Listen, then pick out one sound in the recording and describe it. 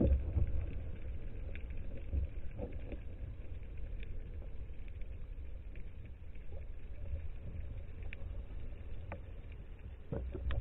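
Water clicks and crackles faintly underwater.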